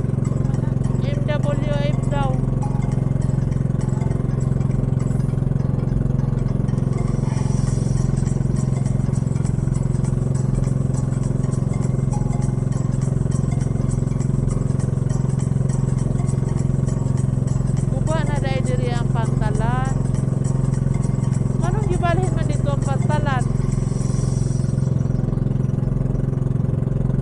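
A boat engine drones steadily and loudly.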